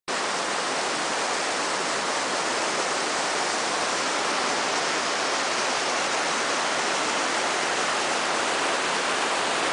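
Wind blows steadily outdoors across the microphone.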